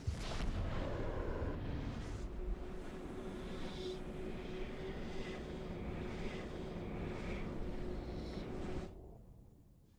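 A loud rushing, whooshing roar with a steady low hum surges and then suddenly cuts off.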